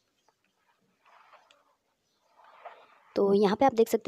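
A hand brushes softly across a paper page.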